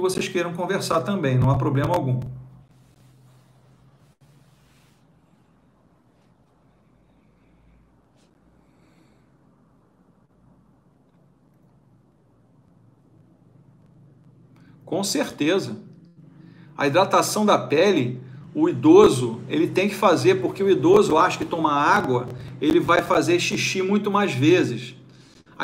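A middle-aged man speaks calmly and close to a clip-on microphone, with a long pause.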